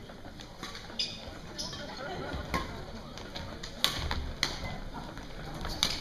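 Rackets strike a shuttlecock in a rally.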